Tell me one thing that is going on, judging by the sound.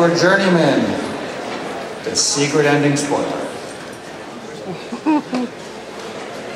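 A man speaks theatrically into a microphone.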